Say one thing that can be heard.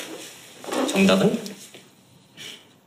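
A man asks a question in a teasing voice, close by.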